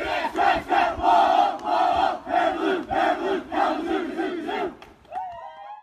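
A group of young men and women chant loudly together in rhythm, outdoors.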